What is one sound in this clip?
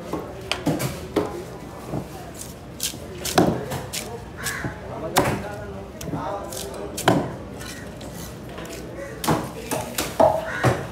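Wet flesh slaps and squelches as a fish is handled.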